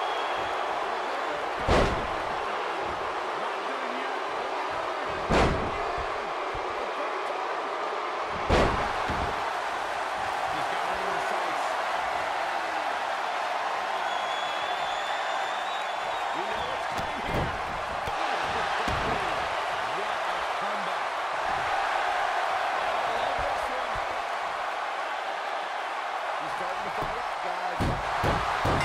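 A large crowd cheers and murmurs steadily in a big arena.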